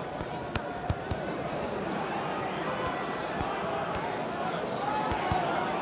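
A football is kicked with dull, repeated thuds.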